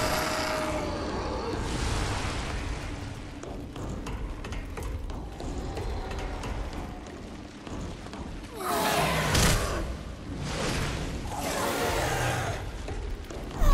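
Footsteps clank on metal grating.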